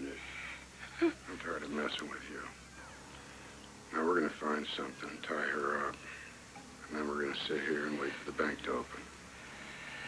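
A man speaks calmly and menacingly, close by.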